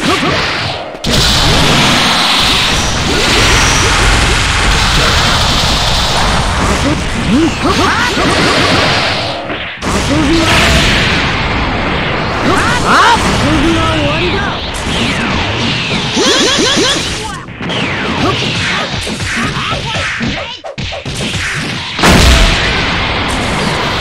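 Energy blasts roar and crackle loudly.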